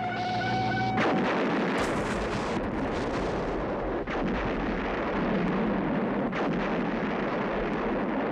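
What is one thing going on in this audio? A huge explosion roars and rumbles.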